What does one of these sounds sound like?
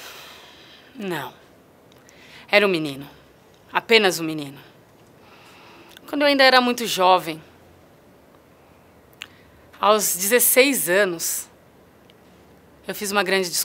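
A young woman speaks calmly and close to a microphone, in short phrases with pauses.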